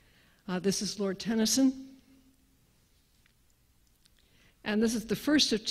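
A middle-aged woman speaks with animation into a microphone, heard through a loudspeaker in a large room.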